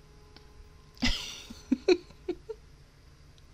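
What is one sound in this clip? A young woman laughs softly.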